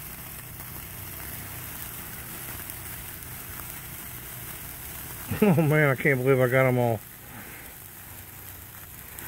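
Sparklers fizz and crackle steadily close by.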